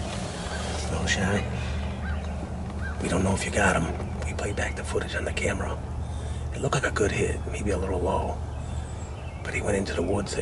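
A man whispers quietly close by.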